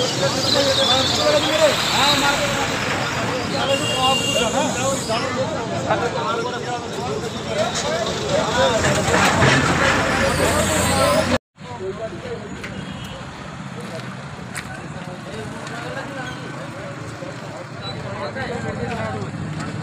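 Several men talk over one another with animation outdoors.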